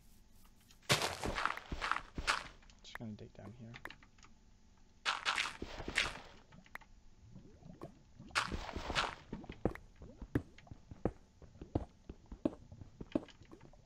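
Dirt and stone crunch in short, repeated knocks as they are dug.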